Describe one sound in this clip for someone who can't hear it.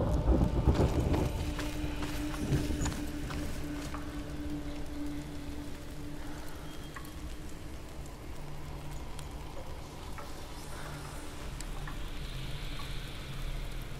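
Footsteps crunch over debris and dirt.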